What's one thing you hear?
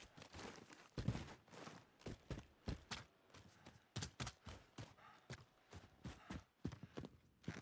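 Running footsteps thud quickly and steadily on the ground.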